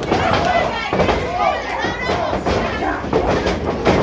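Wrestlers' blows land with sharp slaps.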